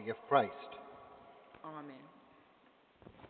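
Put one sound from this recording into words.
An elderly man sings a short phrase through a microphone in a large echoing hall.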